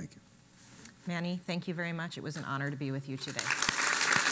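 A woman speaks warmly through a microphone.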